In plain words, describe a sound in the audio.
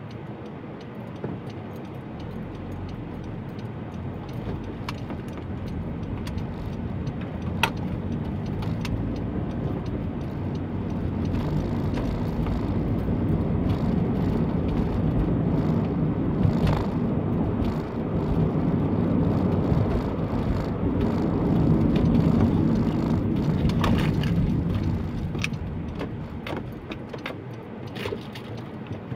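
A car engine hums and road noise rumbles from inside the car, growing louder as it speeds up.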